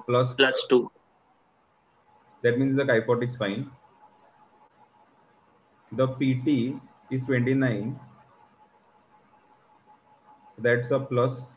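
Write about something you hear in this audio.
A young man speaks calmly in short phrases through an online call.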